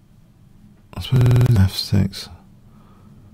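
A middle-aged man speaks close to a microphone, with a short, loud outburst.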